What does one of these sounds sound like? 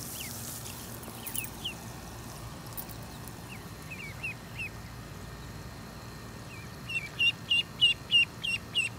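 Ducklings peep in short high chirps.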